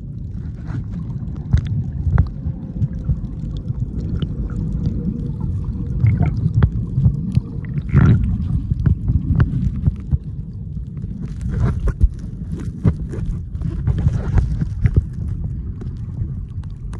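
Swimmers' kicks splash and bubble nearby underwater.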